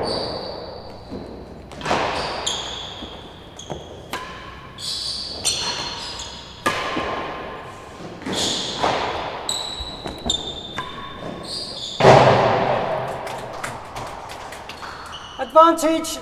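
A ball bounces off walls and floor with sharp thuds.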